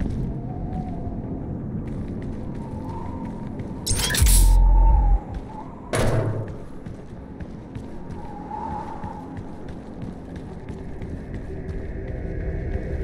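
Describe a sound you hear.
Heavy footsteps thud quickly over grass and stone.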